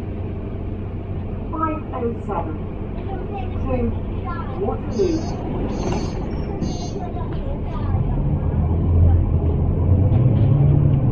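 A bus engine rumbles steadily, rising toward the end.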